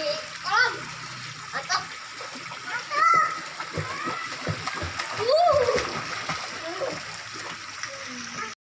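Water splashes lightly as children paddle in a pool.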